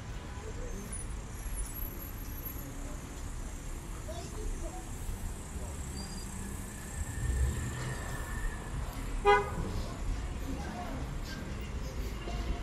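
Footsteps scuff on paving stones close by.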